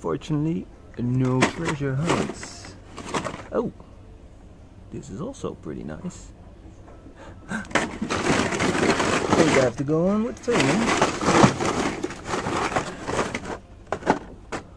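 Plastic toy packages rustle and clatter.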